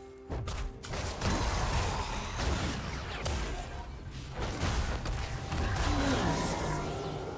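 Game spells crackle and boom in a busy fantasy battle.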